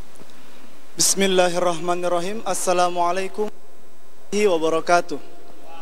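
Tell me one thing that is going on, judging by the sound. A young man speaks calmly into a microphone through a loudspeaker.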